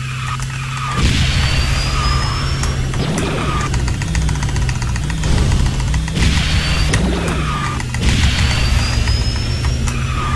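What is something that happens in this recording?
Whooshing boost bursts rush by in a video game.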